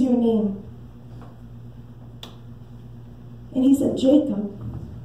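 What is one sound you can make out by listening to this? A woman speaks with animation through a microphone.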